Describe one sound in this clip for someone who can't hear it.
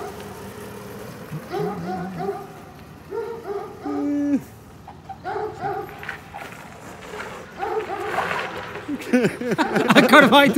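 A small motor whines and revs up and down in bursts, getting louder and closer toward the end.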